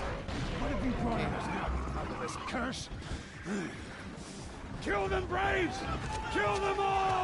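A man shouts angrily up close.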